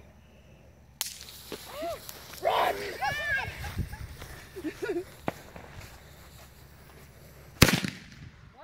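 A firework fuse fizzes and hisses.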